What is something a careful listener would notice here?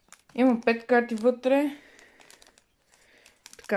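Foil card packets crinkle as hands pick them up.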